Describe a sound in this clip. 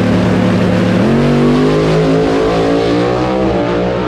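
A drag racing car engine roars as the car launches and speeds away.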